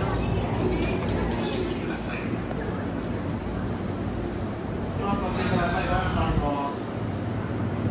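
A standing electric train hums steadily and low.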